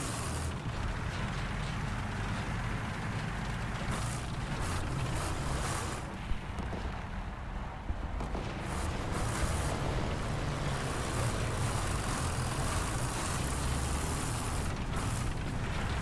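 Tank tracks grind and rattle over the ground.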